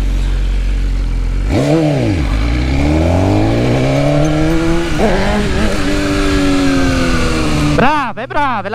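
A motorcycle engine idles, then revs hard and climbs in pitch through gear changes.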